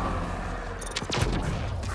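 A vehicle crashes with a loud thud.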